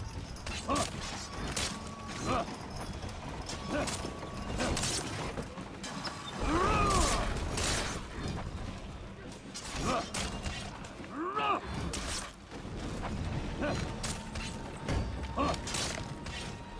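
Men shout and cry out in pain during fighting.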